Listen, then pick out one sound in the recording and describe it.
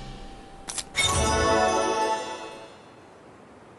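A bright, ringing chime plays a short rising fanfare.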